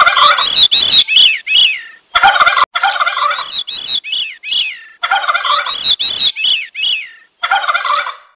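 A flock of cranes calls with loud, repeated bugling cries.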